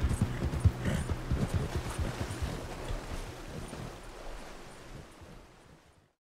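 Water splashes as a horse wades through it.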